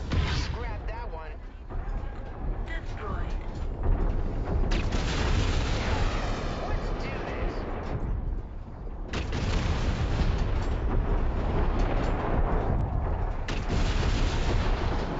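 A heavy walking machine rumbles with a deep, steady drone.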